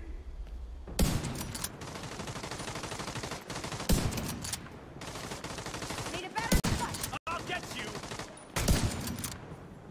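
Sniper rifle shots crack loudly, one after another.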